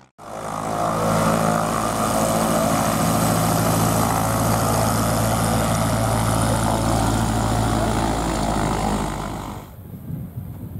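A small propeller plane's engine drones loudly up close.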